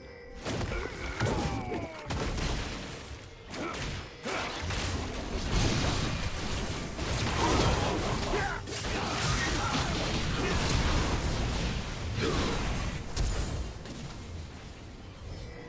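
Spell blasts and sword strikes crackle and clash in a game fight.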